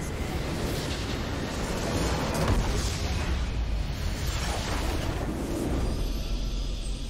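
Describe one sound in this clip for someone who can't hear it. A structure explodes with a loud rumbling blast.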